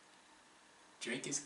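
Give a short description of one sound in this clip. A young man speaks casually close to a microphone.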